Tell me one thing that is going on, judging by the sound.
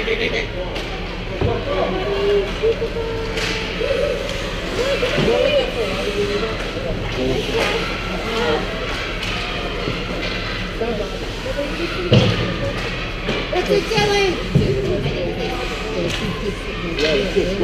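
Skates scrape and glide across ice in a large echoing rink.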